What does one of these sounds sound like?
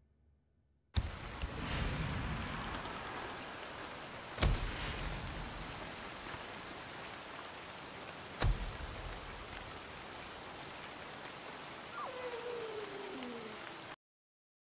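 A campfire crackles nearby.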